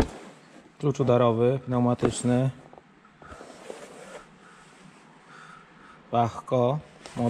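A hand rubs and taps against a cardboard box.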